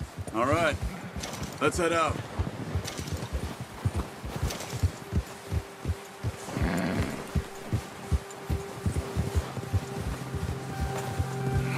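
Horses' hooves thud steadily through snow.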